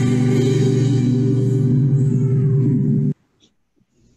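A band plays music, heard through an online call.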